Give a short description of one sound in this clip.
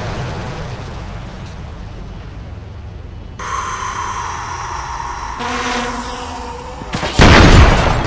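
A small propeller drone buzzes through the air.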